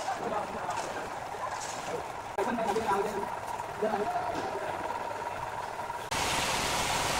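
A machine hums and clanks.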